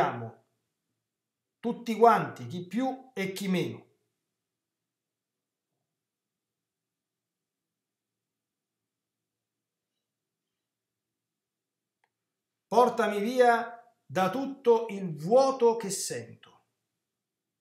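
A middle-aged man speaks calmly into a nearby microphone, with long pauses.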